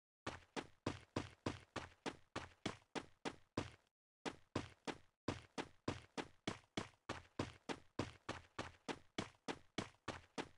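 Quick footsteps thud steadily on grass.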